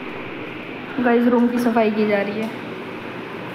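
A young woman speaks briefly, close to the microphone.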